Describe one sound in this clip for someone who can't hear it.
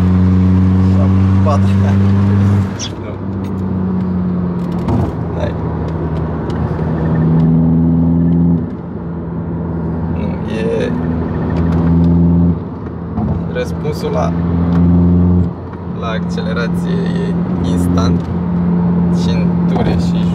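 A car engine hums loudly, rising in pitch and dropping again with each gear change.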